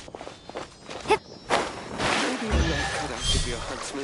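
Water splashes as someone wades and swims.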